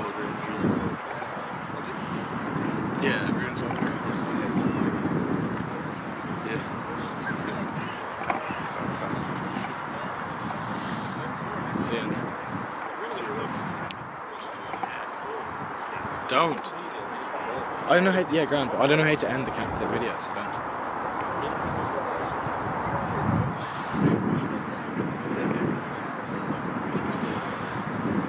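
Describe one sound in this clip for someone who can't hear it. A young man speaks loudly to a team in a huddle outdoors.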